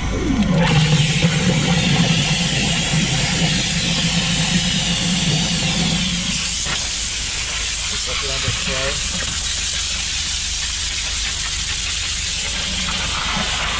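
A pressure washer motor hums loudly and steadily.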